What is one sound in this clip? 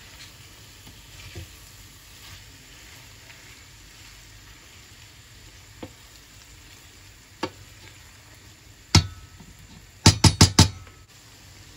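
A wooden spoon stirs thick food in a pan, scraping and tapping against the metal.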